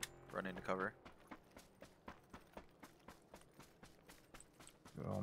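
Quick footsteps fall on ground and grass.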